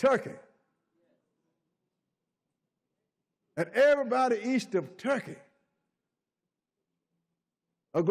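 An elderly man preaches with animation into a microphone, in short bursts with long pauses.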